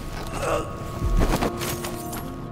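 A body thuds down onto a wooden floor.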